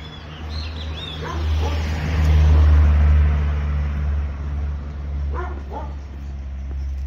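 A car drives past on the street, its engine and tyres rumbling as it approaches and fades.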